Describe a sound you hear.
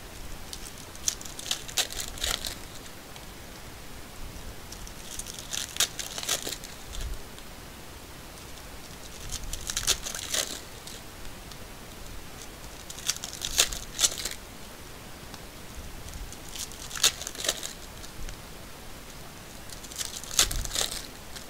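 A plastic wrapper crinkles and rustles in short bursts, close by.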